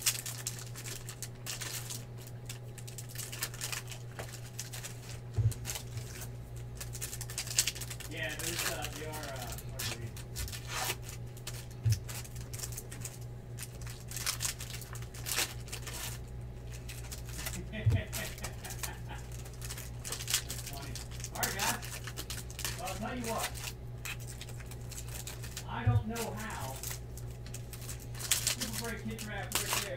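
Plastic card wrappers crinkle and rustle as hands tear them open.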